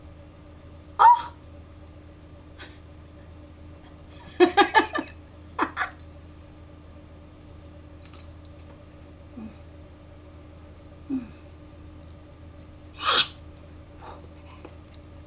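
A glass clinks against another glass.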